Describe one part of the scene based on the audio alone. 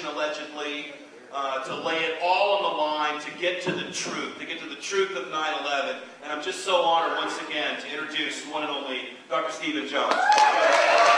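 A man speaks with animation into a microphone.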